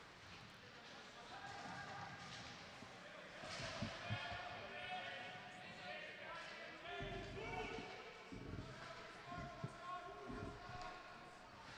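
A crowd of spectators murmurs in a large echoing rink.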